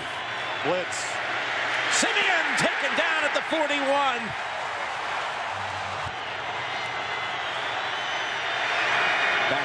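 A large crowd roars and cheers in a big open stadium.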